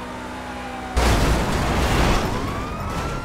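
A car crashes loudly into another car.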